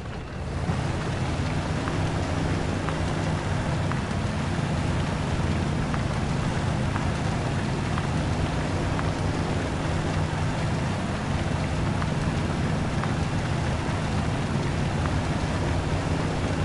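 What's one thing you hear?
Tyres churn through mud.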